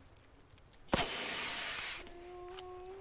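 A flare hisses loudly as it burns.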